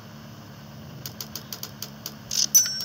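Quick electronic chimes and clicks sound.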